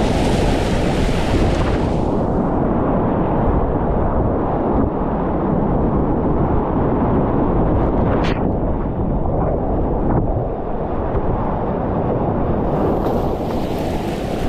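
A kayak paddle splashes into the water.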